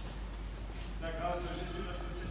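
A man speaks at a distance in an echoing hall.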